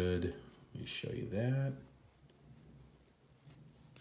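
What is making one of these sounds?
A watch crown clicks faintly as it is turned.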